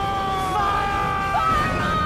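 A man shouts loudly with a long drawn-out cry.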